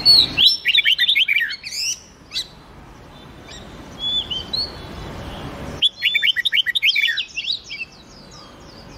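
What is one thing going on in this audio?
Songbirds sing quick, bright chirping phrases in bursts.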